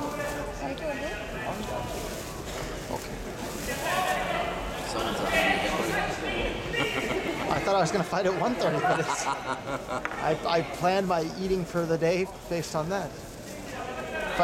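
Men shout loud encouragement from the sidelines in a large echoing hall.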